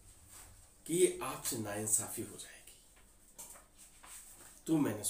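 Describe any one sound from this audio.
A man speaks close by with animation.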